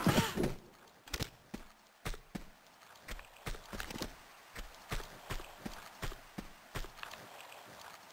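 Footsteps slap quickly on a hard floor.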